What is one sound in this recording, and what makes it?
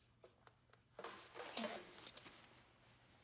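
A woman speaks quietly nearby.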